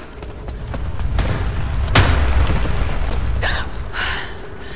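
Stone crumbles and rubble crashes down with a rumble.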